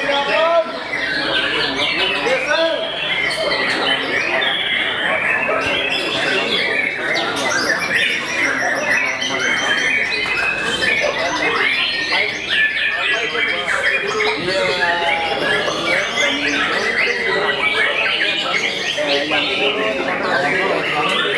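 A songbird sings close by with loud, varied chirps and trills.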